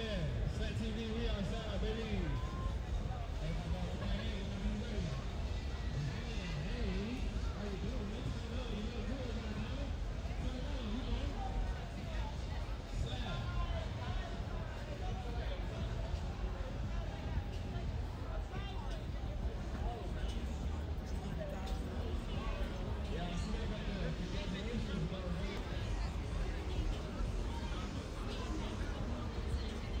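A crowd of young people chatters and talks outdoors at night.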